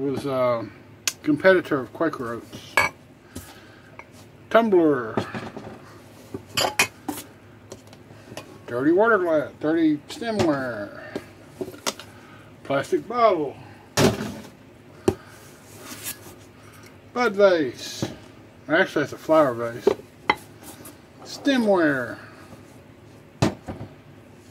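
Glass bottles and jars clink and knock as they are handled.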